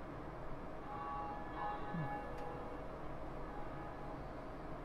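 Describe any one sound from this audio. A large bell rings and its tone lingers.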